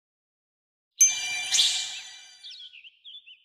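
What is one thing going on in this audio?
A bright chime rings out with a sparkling shimmer.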